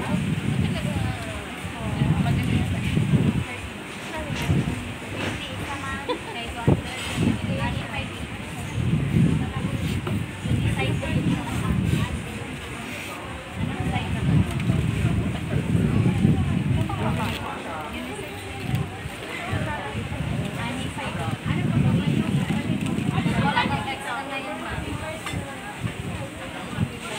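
A crowd of shoppers chatters close by.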